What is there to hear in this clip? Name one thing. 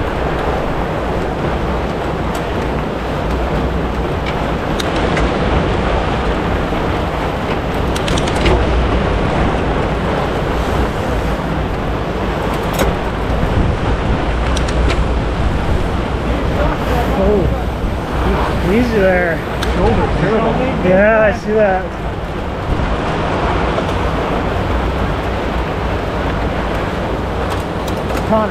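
Wind rushes loudly past, close by.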